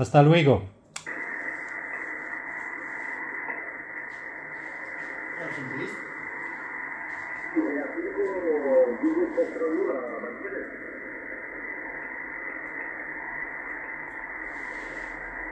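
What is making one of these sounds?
Static hisses steadily from a radio receiver.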